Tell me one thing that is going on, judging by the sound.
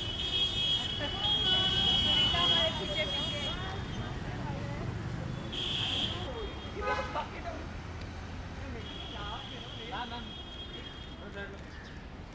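Men and women talk over one another nearby, outdoors.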